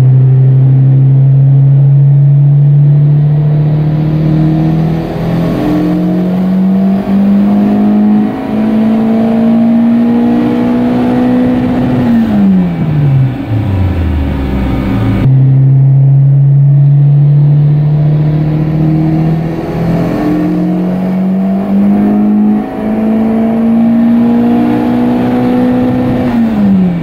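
A car engine revs up steadily, holds high, then drops back to idle.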